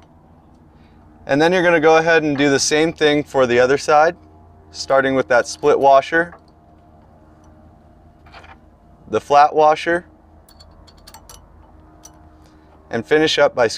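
A metal hitch pin slides and clicks into place.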